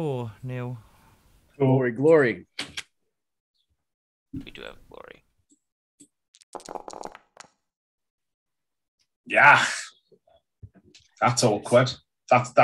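Several men talk with animation over an online call, each close to a microphone.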